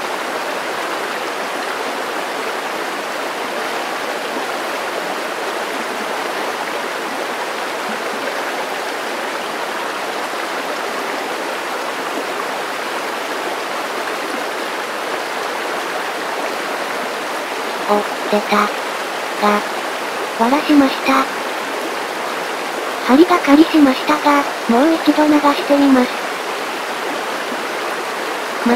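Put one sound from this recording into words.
A shallow stream ripples and gurgles over stones.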